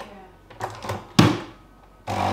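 A button clicks on a coffee machine.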